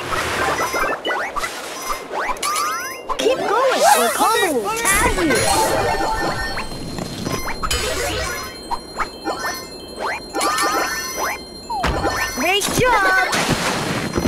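Bright game chimes ring as coins are collected.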